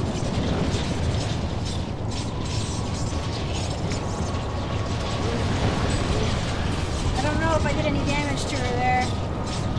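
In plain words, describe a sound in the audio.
Magic blasts roar and crackle in a fierce battle.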